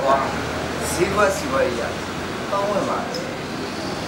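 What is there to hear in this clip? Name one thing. A young man talks casually, close by.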